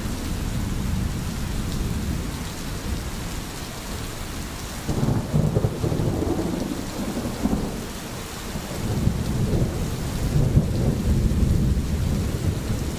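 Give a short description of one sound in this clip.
Rain falls steadily through the trees.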